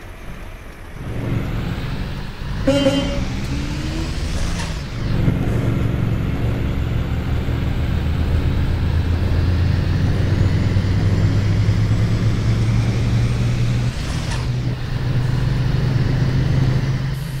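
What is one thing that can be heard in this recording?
A bus engine hums low and grows louder as the bus pulls away.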